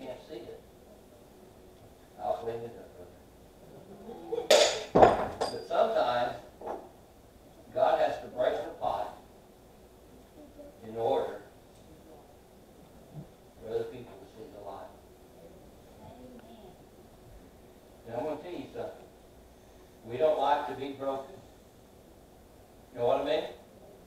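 An elderly man speaks in bursts with pauses, heard in a large room with a slight echo.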